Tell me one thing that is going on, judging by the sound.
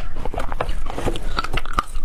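Pieces of ice clink together as a hand picks through them.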